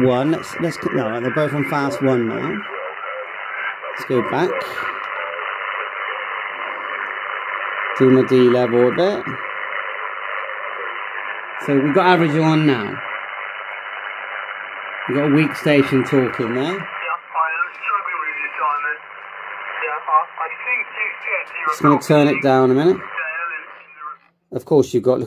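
Static hisses steadily from a radio loudspeaker, then cuts off.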